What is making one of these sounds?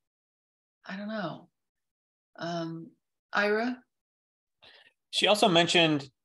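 A young woman speaks calmly in short phrases over an online call.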